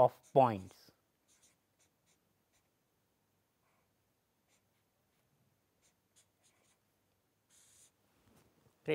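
A marker pen squeaks and scratches faintly on paper.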